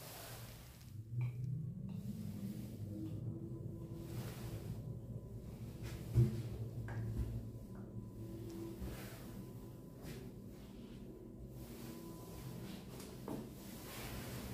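A lift hums steadily as it travels.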